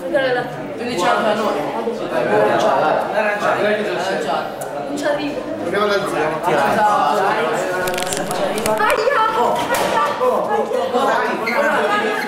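A group of teenage boys laughs and shouts excitedly.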